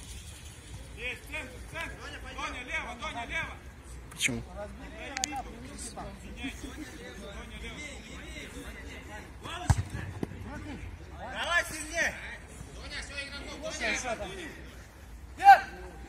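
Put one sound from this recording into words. Men shout to each other during a game of football, some distance away.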